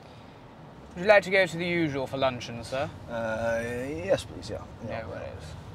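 A young man talks with animation inside a car.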